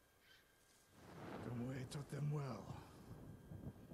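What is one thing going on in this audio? A deep-voiced man answers slowly and calmly.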